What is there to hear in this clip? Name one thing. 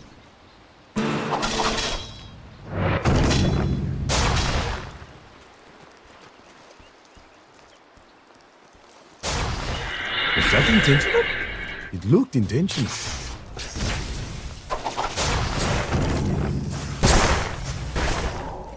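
Game spell effects burst and crackle in bursts.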